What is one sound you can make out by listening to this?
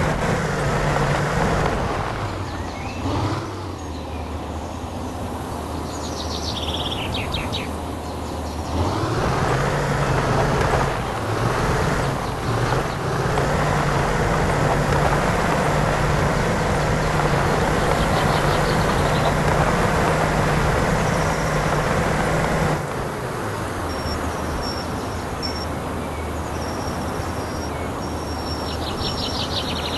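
A heavy truck engine labours uphill.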